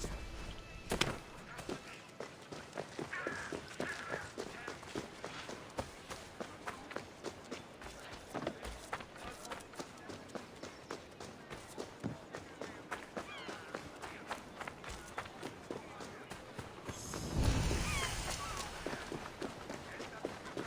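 Quick footsteps run steadily over stone and dirt.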